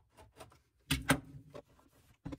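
A knife is set down on a hard counter with a clack.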